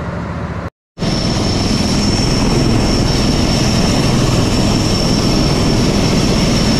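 A helicopter engine whines loudly and steadily close by.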